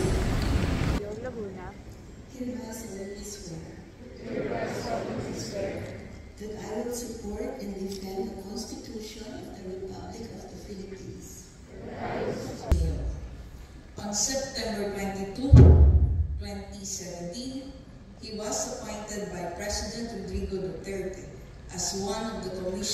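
A crowd of young men and women recites together in unison.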